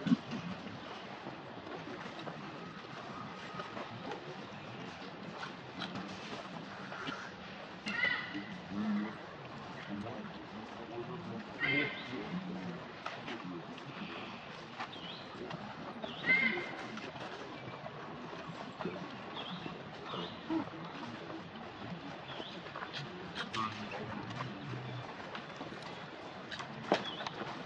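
A monkey sucks and slurps from a juice carton.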